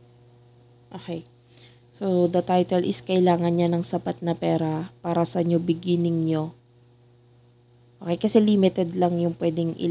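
A young woman sings close to a microphone.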